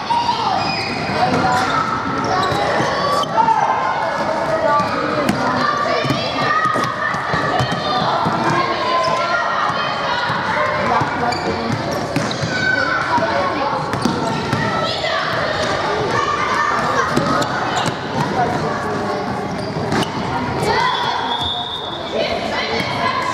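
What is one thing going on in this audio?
Children shout and call out throughout a large echoing hall.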